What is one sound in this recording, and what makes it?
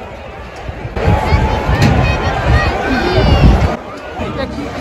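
A crowd sings and shouts loudly outdoors.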